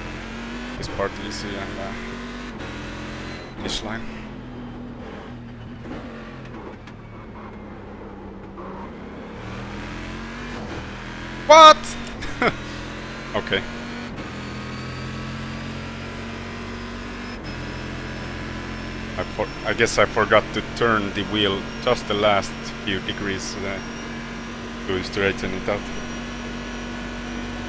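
A race car engine drones steadily, its pitch rising and falling with gear changes.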